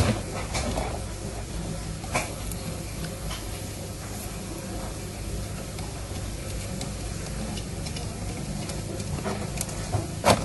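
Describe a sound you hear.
Small plastic parts click and tap.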